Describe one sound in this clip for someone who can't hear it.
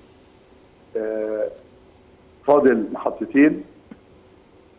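A man speaks into a studio microphone in short bursts.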